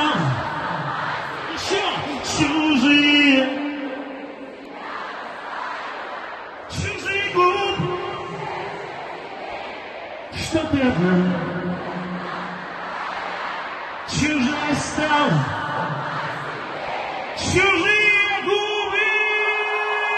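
A huge crowd sings along loudly in a vast open stadium.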